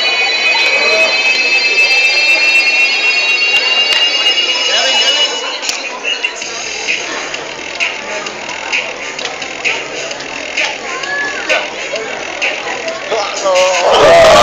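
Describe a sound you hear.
A crowd of young people chatters nearby.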